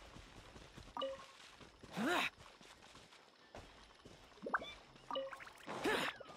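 A bright chime sounds as an item is picked up.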